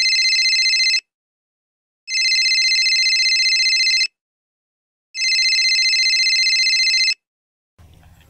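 A mobile phone rings in repeated bursts.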